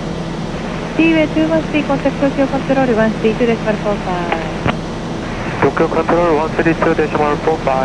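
A man speaks calmly over a headset intercom.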